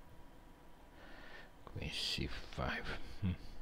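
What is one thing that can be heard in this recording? A man speaks into a headset microphone.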